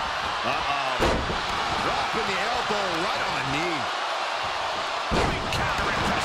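Heavy bodies thud onto a wrestling ring mat.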